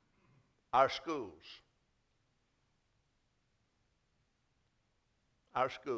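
An elderly man preaches with animation through a microphone in a large echoing hall.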